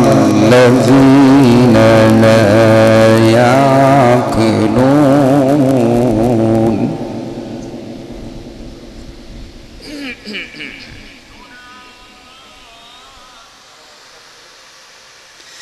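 A crowd of men murmurs and talks quietly nearby.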